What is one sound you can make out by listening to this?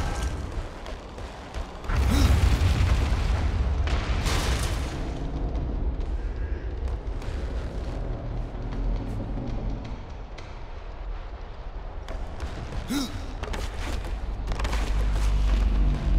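Heavy footsteps thud on wooden planks.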